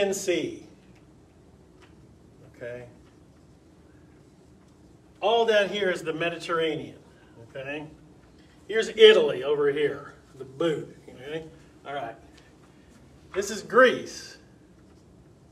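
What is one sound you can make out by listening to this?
A middle-aged man speaks with animation in a room, pausing between phrases.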